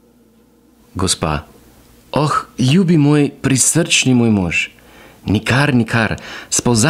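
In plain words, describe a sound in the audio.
A man reads aloud in a low, steady voice close by.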